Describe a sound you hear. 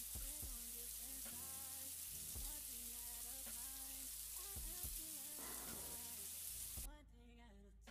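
Water sprays steadily from a shower head and patters down.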